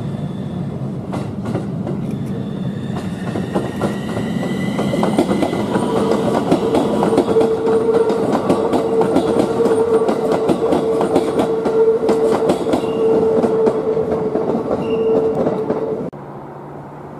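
Train wheels clatter rhythmically over the rail joints.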